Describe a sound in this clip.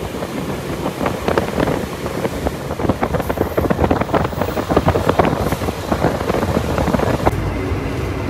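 Train wheels clatter rapidly over rail joints.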